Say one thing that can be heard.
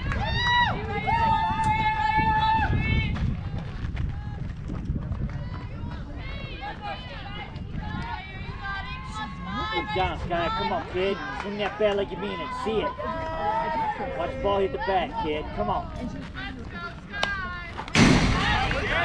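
Young girls chant and cheer loudly outdoors.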